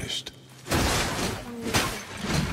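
An axe strikes hard with a heavy crash.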